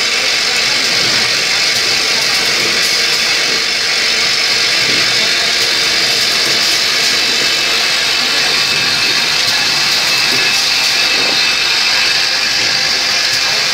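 A vibratory bowl feeder rattles parts steadily.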